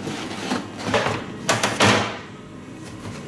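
A metal baking tray scrapes and clanks.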